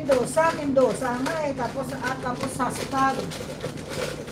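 A middle-aged woman speaks close to a microphone.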